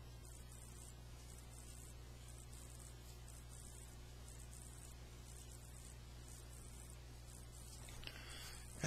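A marker squeaks and scratches across paper.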